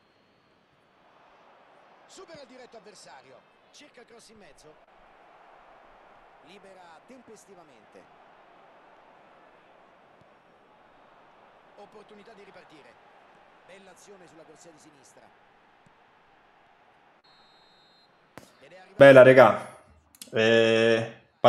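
A stadium crowd murmurs and cheers.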